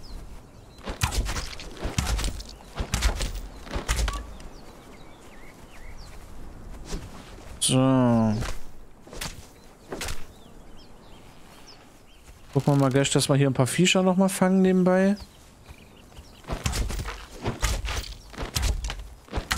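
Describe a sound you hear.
Weapons strike in a fight.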